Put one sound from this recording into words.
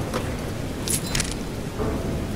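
A heavy lid thuds open.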